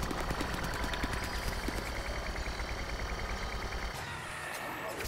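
A weapon in a video game fires rapidly with short, repeated pops.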